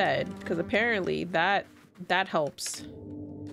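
A young woman speaks with animation, close to a microphone.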